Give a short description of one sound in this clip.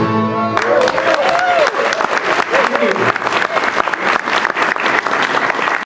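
A banjo picks quick rolling notes.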